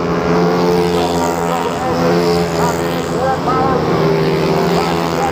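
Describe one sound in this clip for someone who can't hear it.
Several motorcycle engines whine loudly and steadily.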